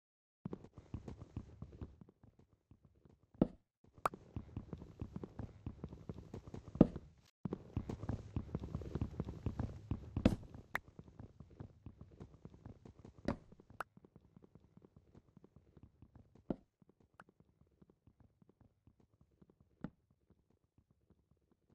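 Wooden blocks are chopped with repeated dull knocks.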